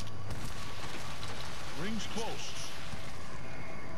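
A gun clicks and clatters as it is reloaded.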